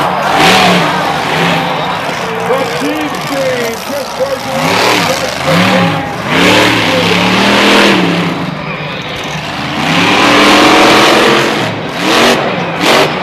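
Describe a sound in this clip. A monster truck engine roars and revs loudly.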